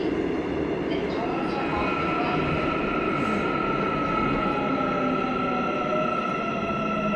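A subway train rumbles along the track, heard from inside the car.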